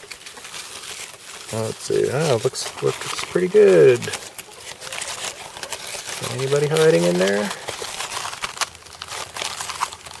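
A hand rustles through crisp leaves.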